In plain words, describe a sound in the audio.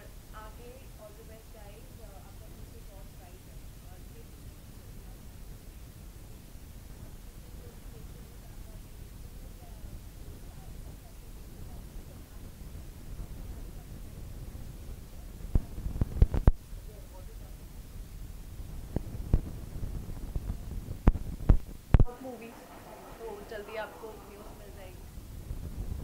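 A young woman speaks calmly into a nearby microphone.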